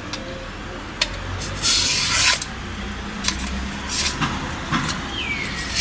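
A sharp knife blade slices through paper with a crisp rasp.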